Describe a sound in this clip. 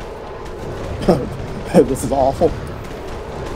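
A huge beast growls and roars.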